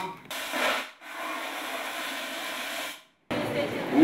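A fire extinguisher sprays with a loud, steady hiss.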